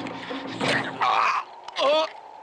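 Two men scuffle on loose dirt.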